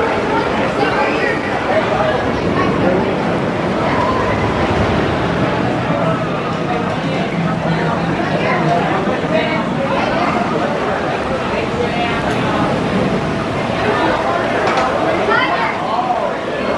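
A roller coaster train rumbles and rattles along a wooden track.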